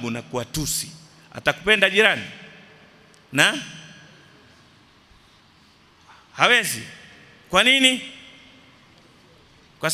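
A middle-aged man speaks with animation into a microphone in an echoing hall, in short bursts with pauses.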